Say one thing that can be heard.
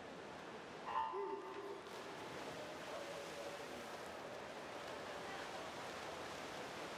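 Swimmers splash into the water and swim.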